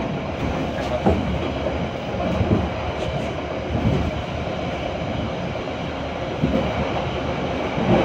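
Train wheels knock over rail joints.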